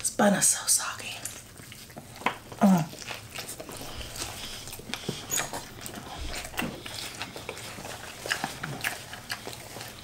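People bite into and chew food close to a microphone.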